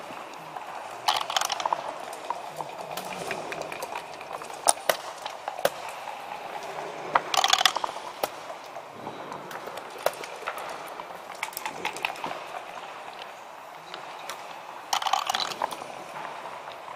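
Dice rattle and tumble onto a board.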